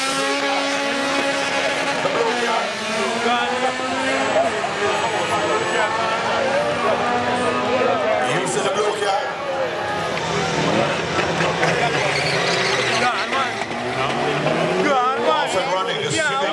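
Drag race car engines rev hard as the cars launch.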